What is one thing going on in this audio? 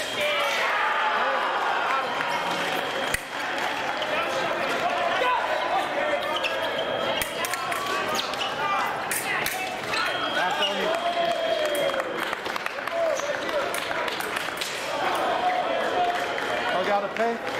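Spectators chatter and shout in a large echoing hall.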